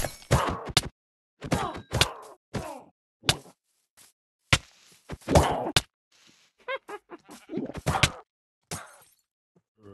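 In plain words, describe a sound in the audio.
Leaves rustle and crunch in quick bursts as they are chopped.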